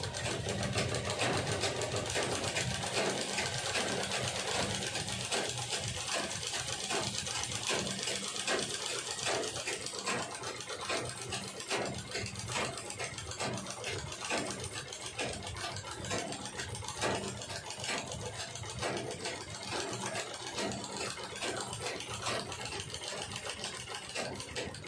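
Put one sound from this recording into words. A domestic sewing machine stitches through cloth with a fast, even clatter.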